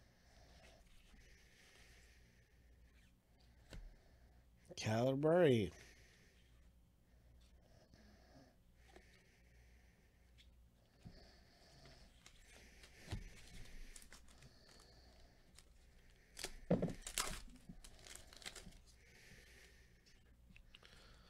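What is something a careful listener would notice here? Trading cards slide and rustle against each other as they are shuffled by hand.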